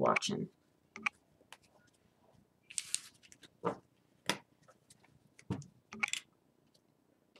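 Playing cards slap and slide onto a table.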